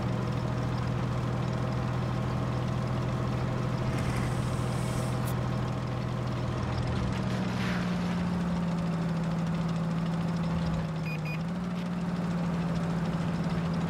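A tank engine rumbles steadily, its pitch shifting now and then.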